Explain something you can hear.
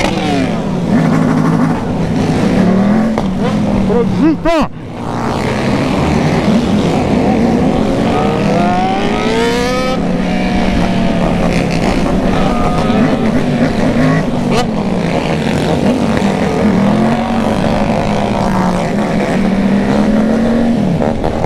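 Other motorcycles rev their engines close by.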